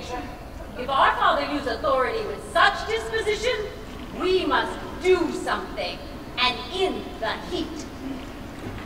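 An adult woman speaks with animation nearby.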